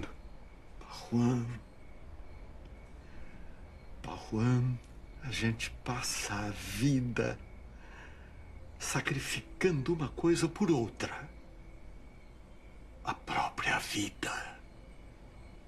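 An elderly man speaks sternly and with force, close by.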